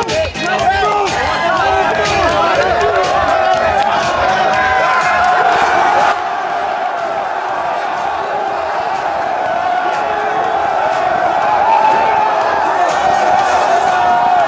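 A crowd of young men cheer and shout loudly close by.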